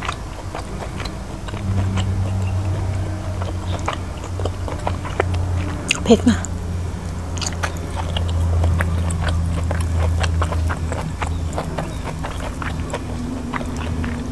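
Fingers squish and pick through soft cooked vegetables.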